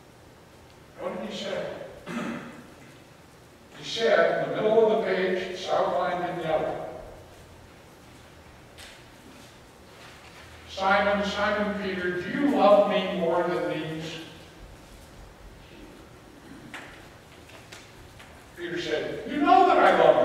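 A middle-aged man speaks calmly through a microphone in a large echoing hall, pausing between phrases.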